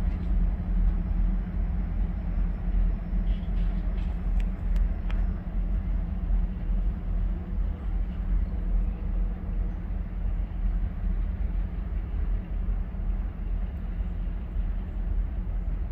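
A diesel locomotive rumbles far off.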